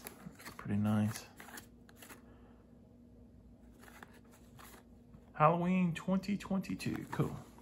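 Plastic wrapping crinkles softly as a small box is turned over in hands.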